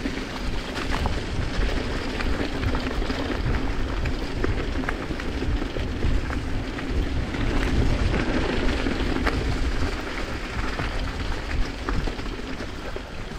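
A bicycle rattles and clicks over bumps.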